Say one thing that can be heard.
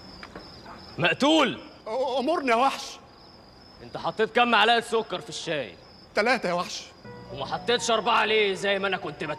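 A man speaks loudly.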